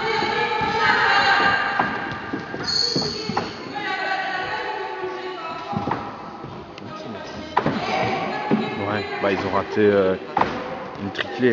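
Children talk and call out in a large echoing hall.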